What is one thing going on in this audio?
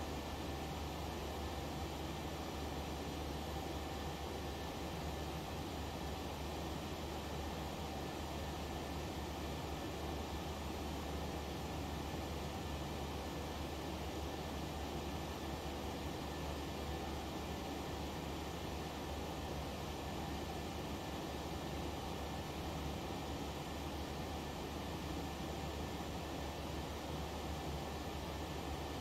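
Jet engines hum steadily with a constant rushing drone.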